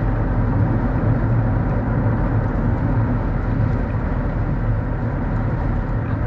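A car engine hums steadily as it drives along.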